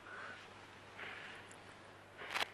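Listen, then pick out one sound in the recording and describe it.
An elderly woman blows out candles with a soft puff of breath.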